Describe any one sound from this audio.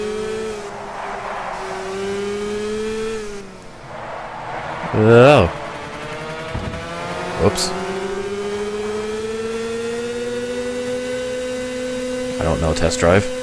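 A kart engine buzzes steadily, its pitch rising and falling with speed.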